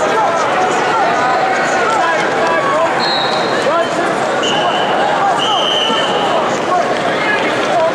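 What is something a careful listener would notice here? A large crowd murmurs and chatters steadily in a big echoing arena.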